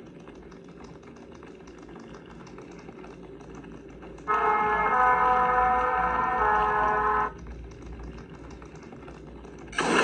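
A video game plays tinny sounds through a small tablet speaker.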